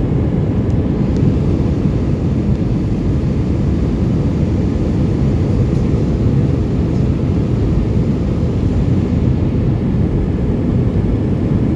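Jet engines roar steadily in a deep, constant rumble.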